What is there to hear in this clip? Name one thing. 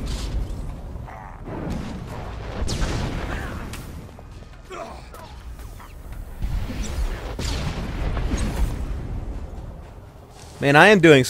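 Blaster shots and explosions boom in a fight.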